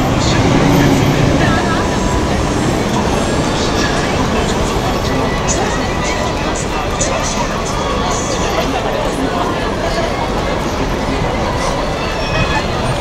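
Cars drive past on a busy city street.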